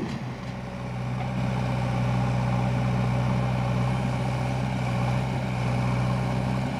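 A diesel engine of a backhoe loader rumbles steadily up close.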